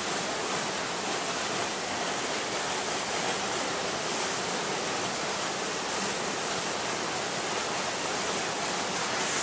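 Water rushes and roars steadily down a rocky cascade close by.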